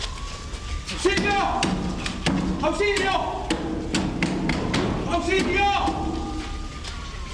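A man shouts desperately, heard from nearby.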